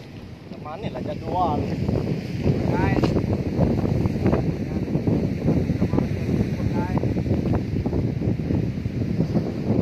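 Wind blows steadily outdoors by the sea.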